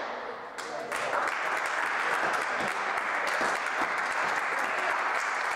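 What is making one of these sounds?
An audience applauds steadily after the rally.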